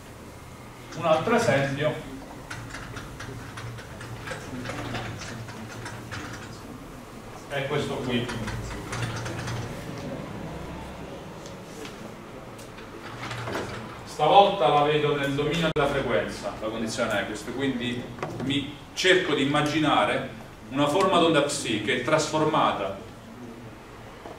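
A young man lectures calmly.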